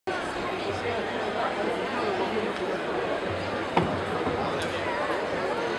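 Men and women chatter at a distance in an open outdoor space.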